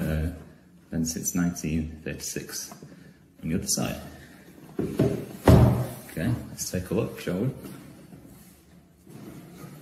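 Hands handle and rub a cardboard box.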